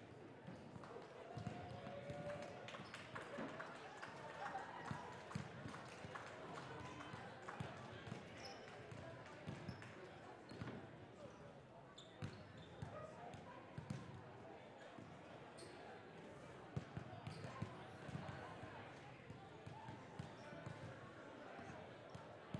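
A basketball bounces on a wooden court in a large echoing gym.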